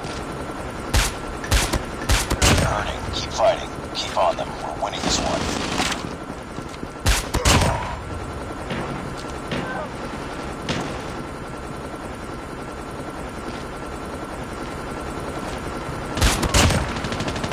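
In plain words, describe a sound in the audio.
Sniper rifle shots boom sharply, one at a time.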